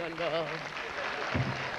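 An elderly man speaks briefly.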